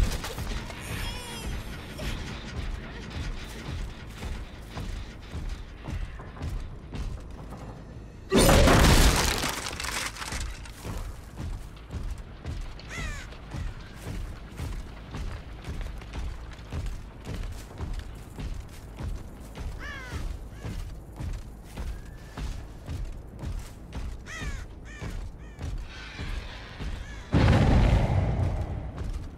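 Heavy footsteps thud at a steady pace.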